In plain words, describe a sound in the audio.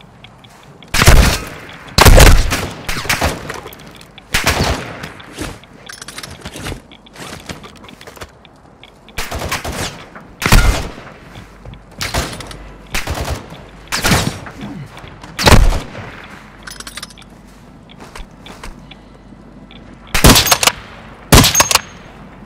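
Loud rifle shots crack and echo, one after another.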